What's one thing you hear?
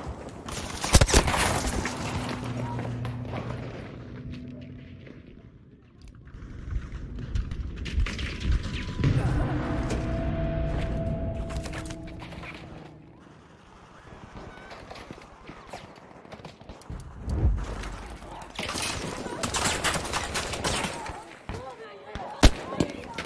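Gunshots crack sharply and echo.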